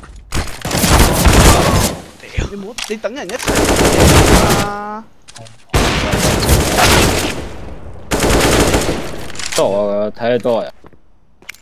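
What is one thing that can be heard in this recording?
Rifle shots fire in loud rapid bursts.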